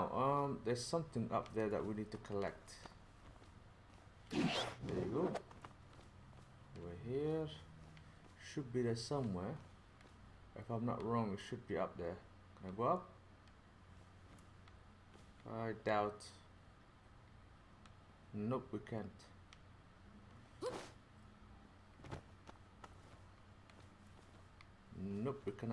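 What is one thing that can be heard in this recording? A man talks with animation close to a microphone, in short bursts with pauses.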